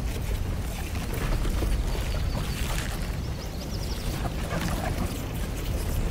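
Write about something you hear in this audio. A swirling portal roars with a steady low rumble.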